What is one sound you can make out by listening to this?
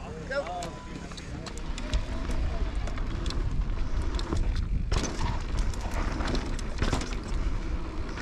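A bicycle's frame and chain rattle over bumps.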